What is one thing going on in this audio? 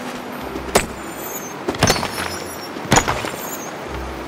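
A pickaxe strikes rock with sharp clinks.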